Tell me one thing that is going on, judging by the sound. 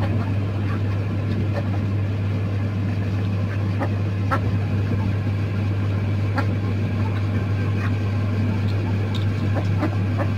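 Beaks tap on metal bowls.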